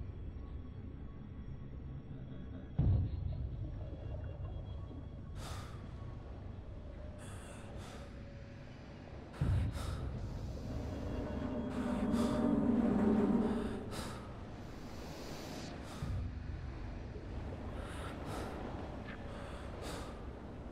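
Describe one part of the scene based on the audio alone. Footsteps thud on a metal deck.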